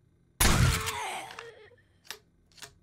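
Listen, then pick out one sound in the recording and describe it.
A gunshot bangs and rings out.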